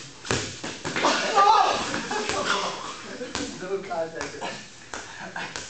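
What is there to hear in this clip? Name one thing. A young man shouts and laughs nearby.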